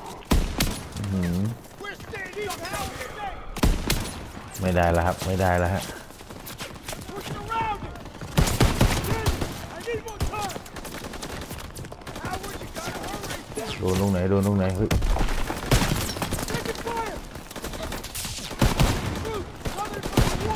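Rifle shots crack loudly, again and again.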